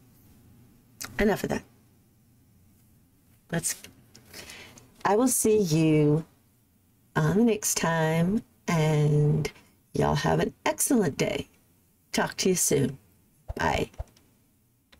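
A middle-aged woman talks with animation into a close microphone, in bursts with pauses.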